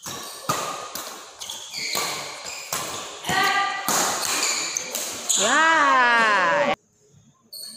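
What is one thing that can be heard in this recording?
Sports shoes squeak on a court floor.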